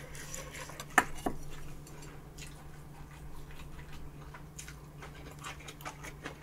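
Chopsticks click against a metal pan.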